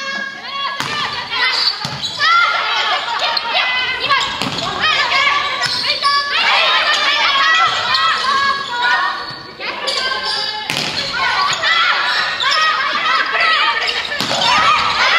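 Young women call out and shout to each other across the court.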